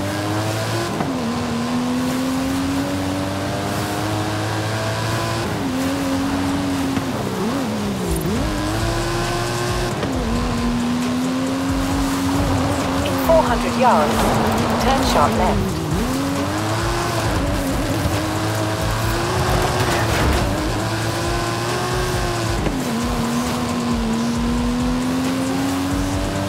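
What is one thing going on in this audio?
A sports car engine roars loudly, revving up and down as gears change.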